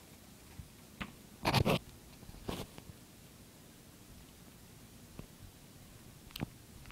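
A phone is handled close by with a few loud bumps and rustles.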